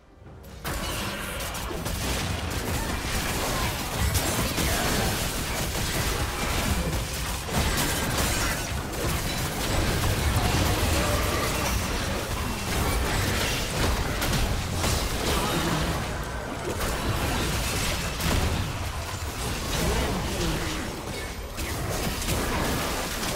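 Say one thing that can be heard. Game spells and attacks crackle and boom in a busy fight.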